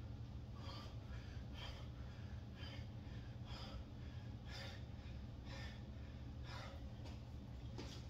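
A man exhales sharply in quick, even bursts.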